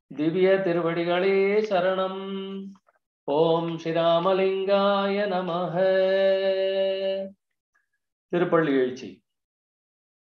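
An older man chants in a sustained, melodic voice, heard through an online call.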